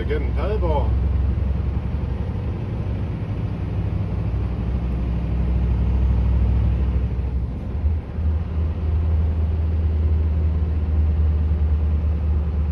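A vehicle's engine rumbles low and steady from inside the cab.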